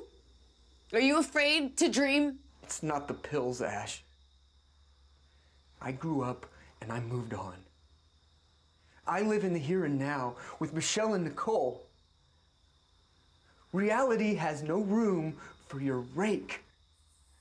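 A man speaks up close.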